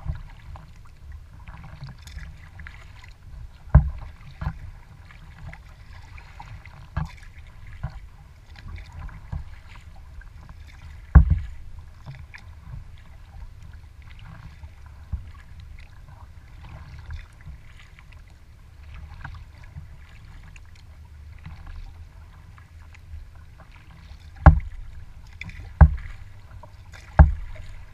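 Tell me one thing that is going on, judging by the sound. Small waves lap and splash against the hull of a kayak.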